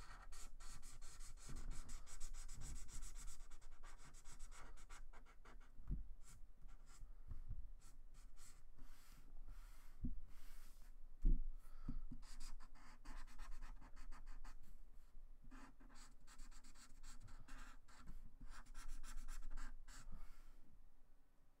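A marker squeaks and scratches across paper.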